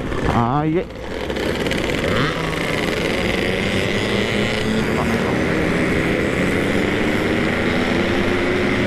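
Wind rushes past while riding.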